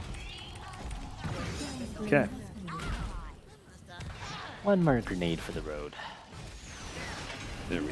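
Game sound effects of spells and impacts play.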